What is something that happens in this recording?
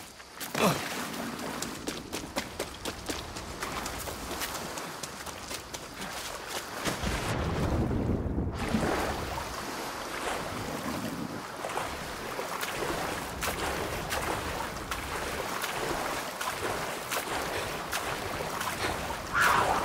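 Water splashes as someone wades and swims through it.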